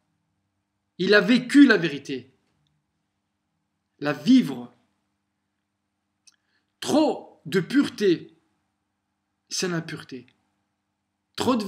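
A young man speaks calmly and closely into a microphone, in short bursts with pauses.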